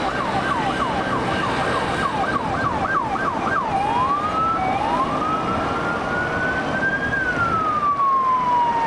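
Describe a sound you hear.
A police siren yelps fast, then switches to a slow rising and falling wail.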